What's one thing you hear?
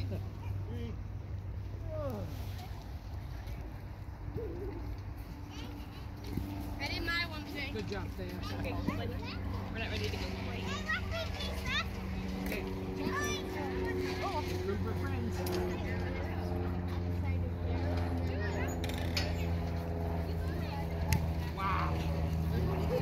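Young children shout and squeal while playing outdoors.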